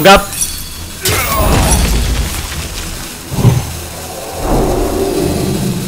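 A magical blast whooshes and booms.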